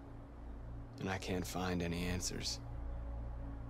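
A young man speaks quietly and sadly, close by.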